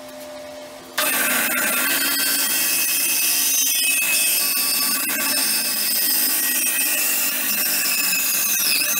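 A band saw hums and cuts steadily through a thick block of wood.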